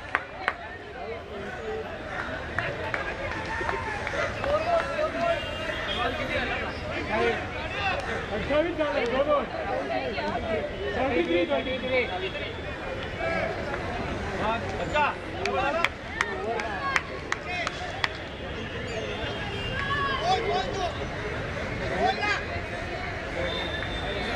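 Men talk with each other outdoors.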